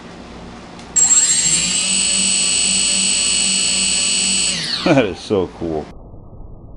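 Small electric motors whine steadily at a high pitch.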